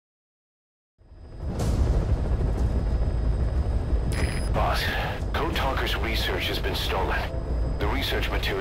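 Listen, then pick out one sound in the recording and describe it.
A helicopter's engine and rotor rumble from inside the cabin.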